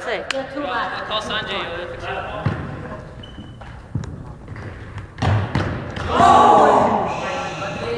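Young players call out and cheer in a large echoing hall.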